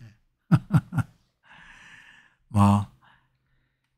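A middle-aged man laughs close to a microphone.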